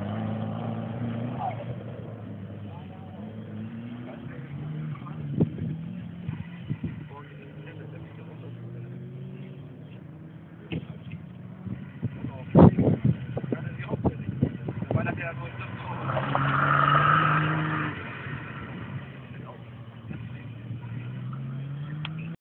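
A rally car engine roars and revs as the car speeds past.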